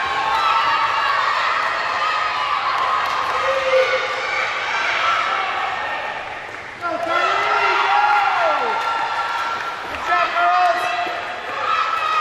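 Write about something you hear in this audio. Swimmers splash and kick through the water in a large echoing hall.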